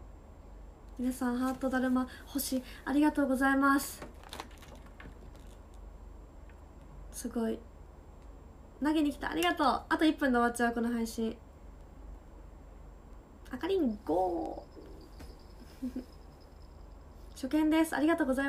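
A young woman talks brightly and cheerfully, close to a microphone.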